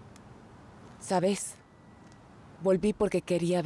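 A woman speaks calmly and clearly close to a microphone.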